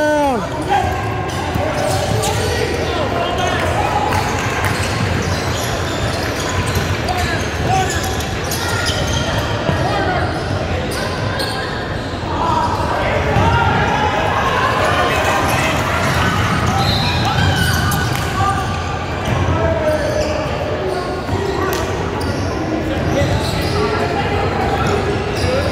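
Young players shout and call out to each other across the echoing gym.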